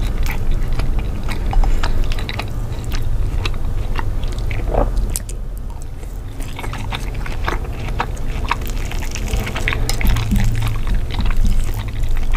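A man chews food wetly and close to a microphone.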